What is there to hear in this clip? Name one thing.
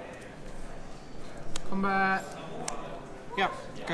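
Playing cards slide and tap softly on a cloth mat.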